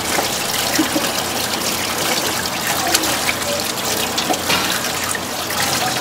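Hands rinse and squish a squid in water.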